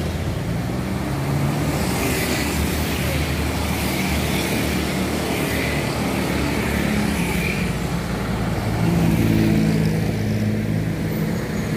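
Motorbike engines hum and buzz past on a busy road.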